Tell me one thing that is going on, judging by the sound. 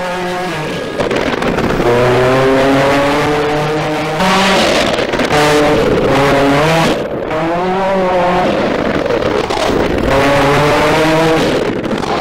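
A turbocharged four-cylinder rally car accelerates hard through its gears.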